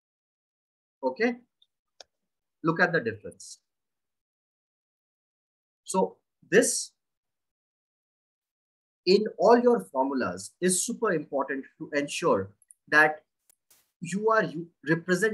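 A young man talks calmly, close to a microphone, in short bursts with pauses.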